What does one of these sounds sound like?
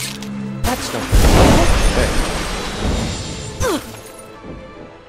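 A magic spell bursts with a loud crackling blast.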